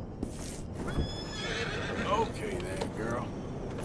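A horse whinnies.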